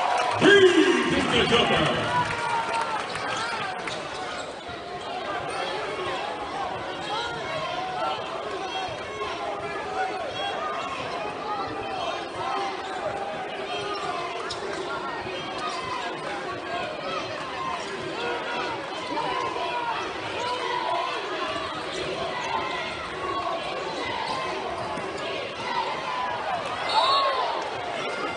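A crowd cheers and chatters throughout a large echoing arena.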